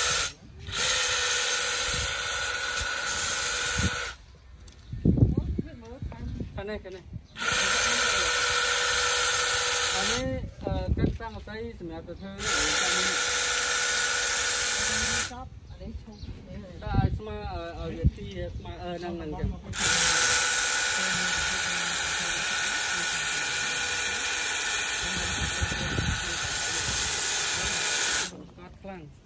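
An electric hedge trimmer buzzes loudly in repeated bursts.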